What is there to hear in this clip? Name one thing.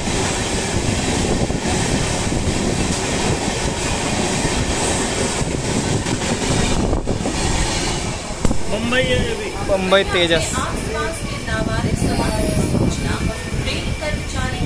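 A train rumbles and clatters loudly along the tracks.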